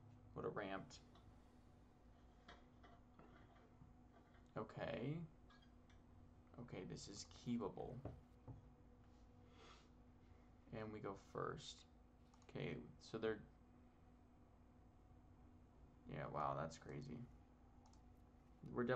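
A man with a headset talks casually into a close microphone, in short bursts.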